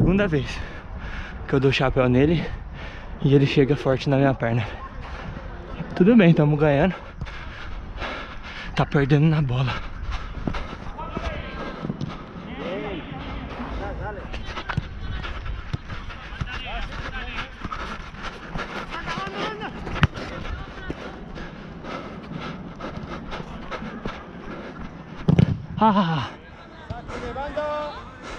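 A man close by talks loudly.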